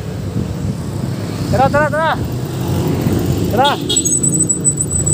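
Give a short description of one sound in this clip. Motorcycle engines rumble past on a road.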